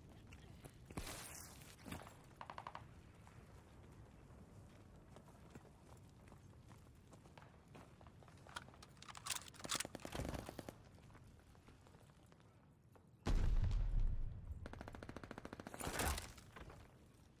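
Gunshots crack loudly in bursts.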